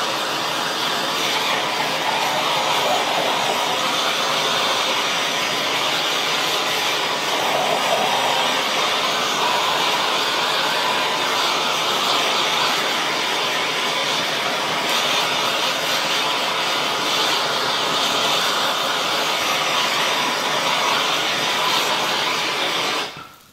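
A blowtorch roars steadily.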